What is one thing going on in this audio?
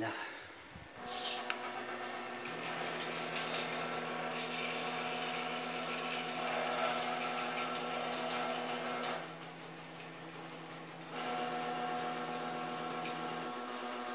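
Electric motors in a robot arm whir with a steady whine.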